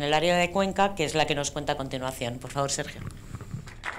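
A young woman speaks into a microphone over a loudspeaker in a large hall.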